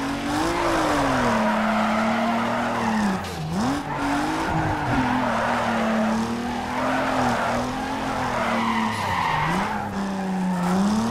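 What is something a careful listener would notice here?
A car engine roars steadily, dipping and rising in pitch as the gears change.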